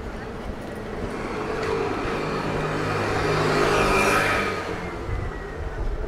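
A motor scooter buzzes past on a street.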